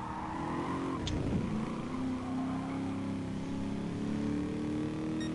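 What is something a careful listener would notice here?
A racing car engine drops in pitch as the gears shift, then climbs again.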